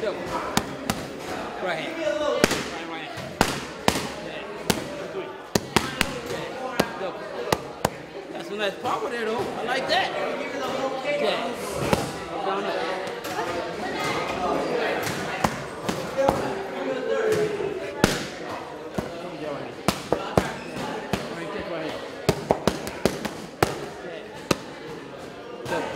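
Boxing gloves smack sharply into padded mitts in quick bursts.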